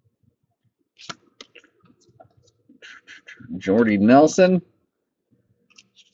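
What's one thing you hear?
Stiff cards slide and rustle against each other as they are shuffled by hand.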